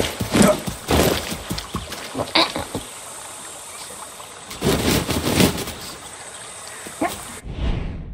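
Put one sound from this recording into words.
A rooster clucks and crows nearby.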